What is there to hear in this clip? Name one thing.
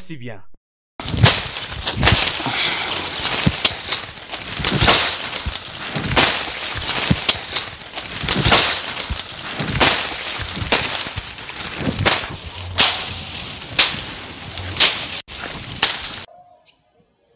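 A man strikes and thrashes through dry brush with sharp cracks.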